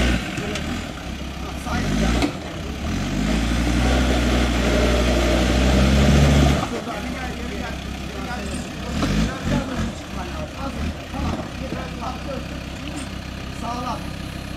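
An off-road vehicle's engine revs hard, then idles.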